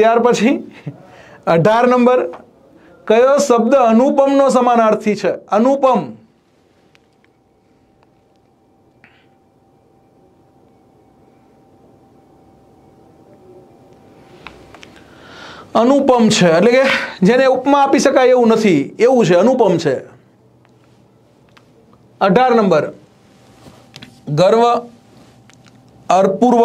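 A man lectures with animation, close to a microphone.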